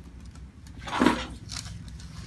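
A neck joint cracks with a sharp pop.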